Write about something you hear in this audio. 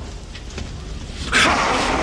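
A man speaks in a low voice close by.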